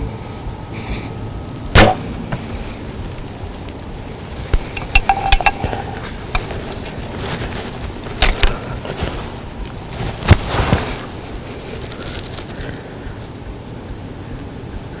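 A deer steps through dry grass and leaves.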